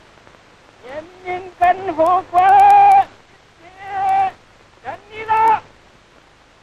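A man proclaims loudly through a loudspeaker, echoing.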